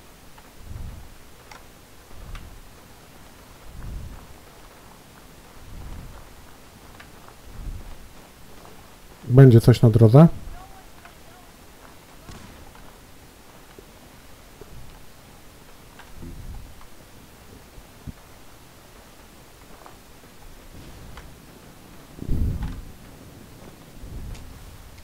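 Heavy footsteps thud slowly on rough ground.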